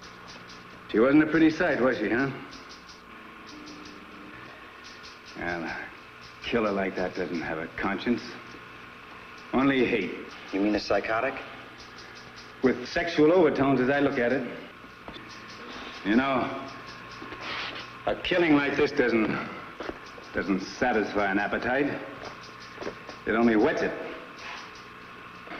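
A middle-aged man speaks gruffly and close by.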